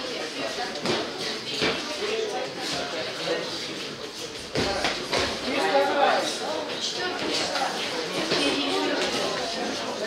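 Boxing gloves thud on a boxer.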